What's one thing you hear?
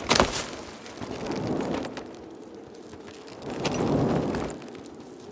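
A heavy metal chain clanks and rattles in bursts.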